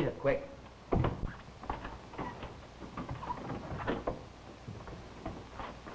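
Men scuffle with thumps and knocks.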